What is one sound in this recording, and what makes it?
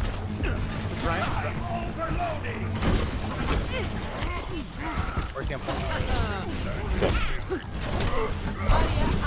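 Futuristic guns fire in rapid bursts.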